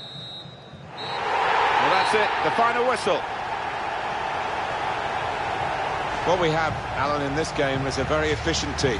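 A large crowd roars and chants steadily in a stadium.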